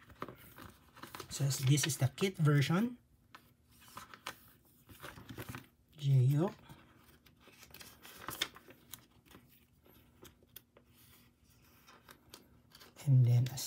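Plastic sleeves crinkle and rustle as cards are slid in and out.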